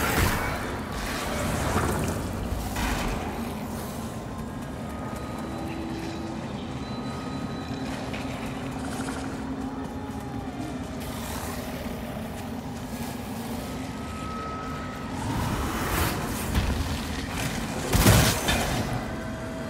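A blade swings and strikes with a sharp hit.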